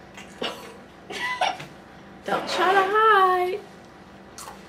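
A young girl laughs and squeals nearby.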